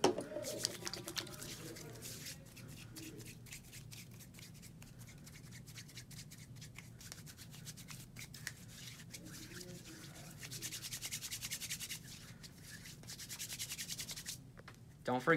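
Hands rub together, swishing softly.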